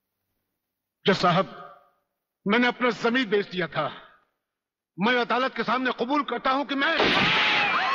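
An older man speaks forcefully with pauses.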